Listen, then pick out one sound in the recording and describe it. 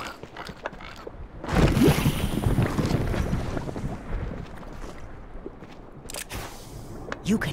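Light footsteps patter quickly on rock.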